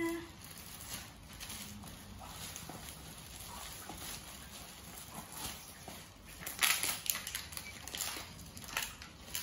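Plastic bags crinkle and rustle.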